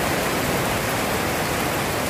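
Rain drums on a plastic roof overhead.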